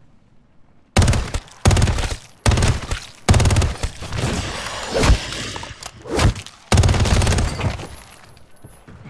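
Rapid gunfire bursts out loudly in short volleys.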